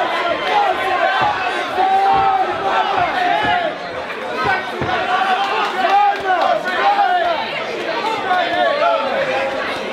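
A crowd talks and chatters loudly in a large echoing hall.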